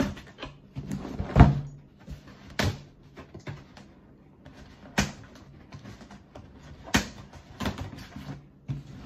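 Cardboard rustles and thumps as a box is handled close by.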